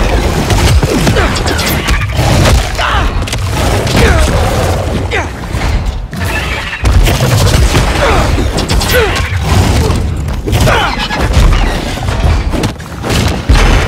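A giant lizard monster roars and snarls.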